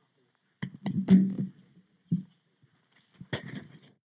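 A man taps a microphone on its stand.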